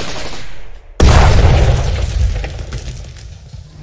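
A heavy blast booms.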